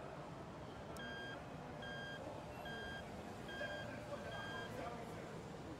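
An electronic beep repeats at a steady pace.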